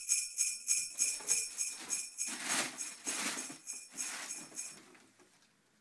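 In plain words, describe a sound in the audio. Wrapping paper rustles and tears as a young man unwraps a present.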